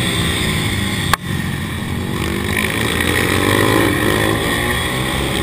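Small motorbike engines rev loudly and closely, rising and falling as the bikes race.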